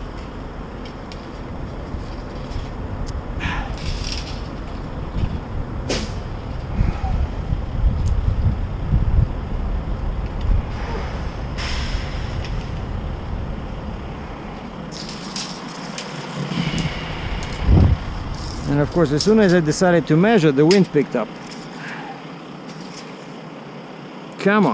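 A metal tape measure rattles and scrapes as it is pulled out.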